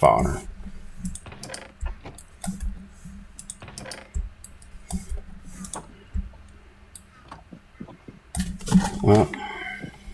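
A wooden chest lid creaks open and thuds shut.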